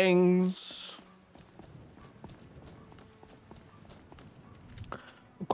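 Footsteps tread on stone paving.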